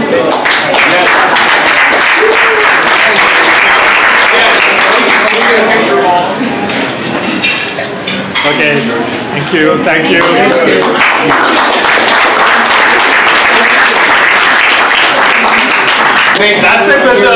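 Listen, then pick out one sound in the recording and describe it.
A crowd applauds.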